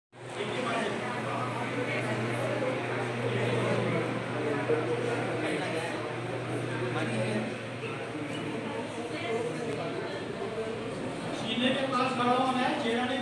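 Many people murmur and talk nearby.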